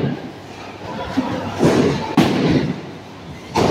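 A bowling ball rolls along a lane with a low rumble.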